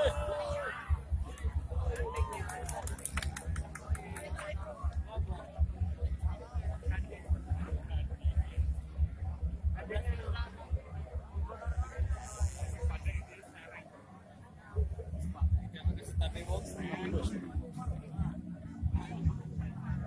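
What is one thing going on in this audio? A large outdoor crowd chatters and calls out.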